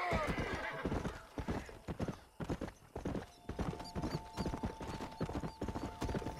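Horse hooves clop steadily on a dirt trail.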